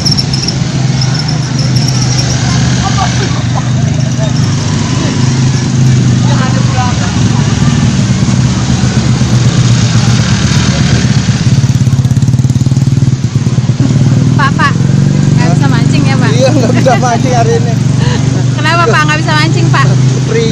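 Motorbike engines hum steadily nearby.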